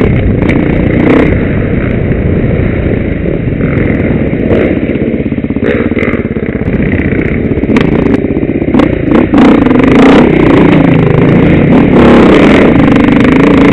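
A dirt bike engine revs loudly close by, rising and falling.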